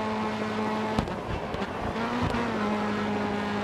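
A racing saloon car engine drops in pitch as it shifts gear.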